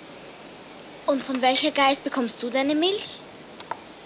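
A young girl speaks nearby calmly.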